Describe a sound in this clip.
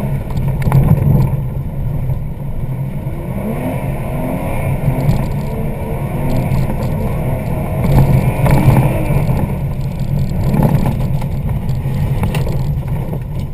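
A car engine drones steadily from inside the car.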